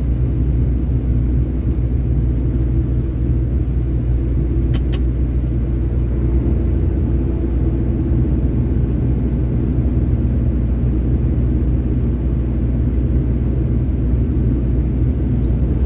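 Tyres hum steadily on asphalt.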